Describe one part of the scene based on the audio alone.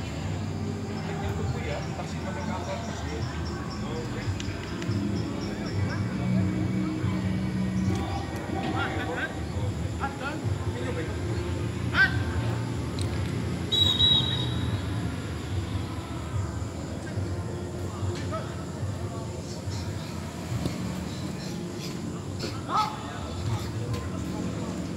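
Players kick a football on a grass field outdoors.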